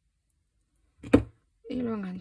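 Pliers are set down on a table with a knock.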